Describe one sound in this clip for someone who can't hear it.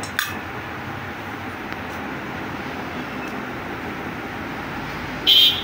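Metal engine parts clink softly as they are handled.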